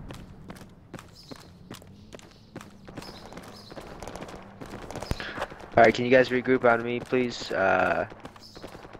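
Footsteps tread steadily on hard ground.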